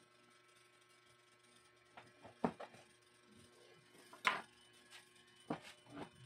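Tools clink and rattle as they are picked up and set down.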